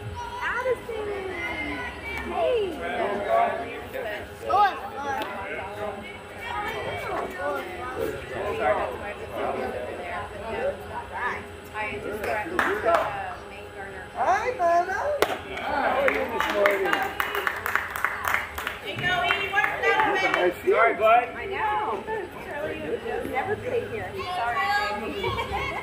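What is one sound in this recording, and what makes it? Young female players shout and cheer from a distance outdoors.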